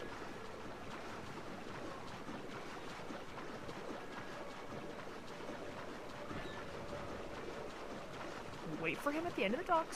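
Water sloshes as a swimmer strokes along.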